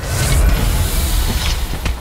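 Fire bursts with a crackling whoosh.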